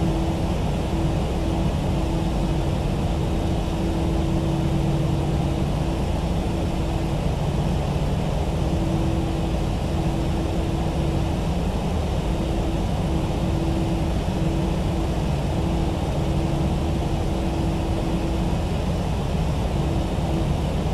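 Jet engines hum steadily as an airliner taxis.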